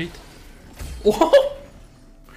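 A man laughs briefly.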